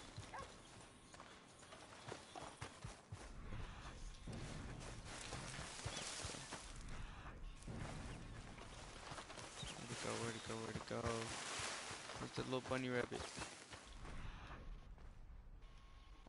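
Footsteps crunch through grass and brush.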